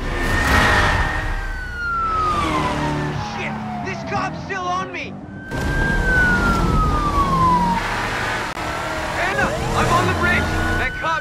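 Car engines roar and rev at high speed.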